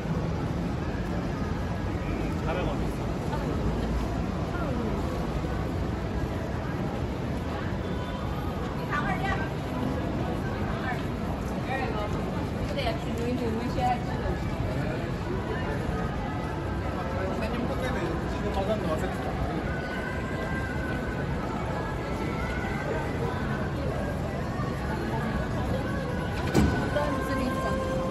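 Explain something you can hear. A busy street crowd murmurs with many distant voices outdoors.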